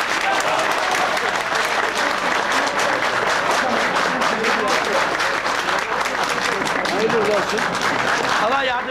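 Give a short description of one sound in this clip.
A crowd of men and women chatters loudly close by.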